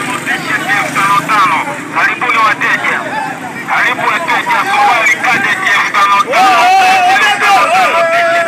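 A crowd of men shout and talk over one another outdoors.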